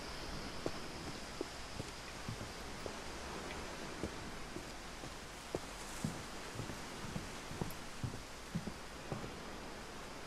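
Footsteps thud softly on wooden steps.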